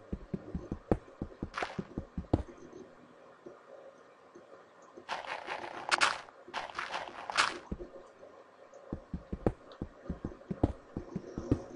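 A video game pickaxe chips at stone blocks in quick, rhythmic taps.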